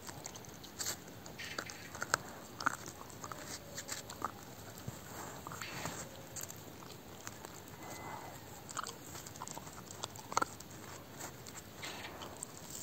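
A dog chews and gnaws on a bone with wet crunching sounds.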